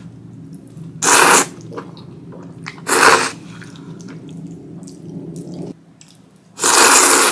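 A young woman slurps noodles loudly, close to a microphone.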